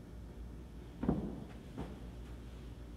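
A man's footsteps sound on a hard floor.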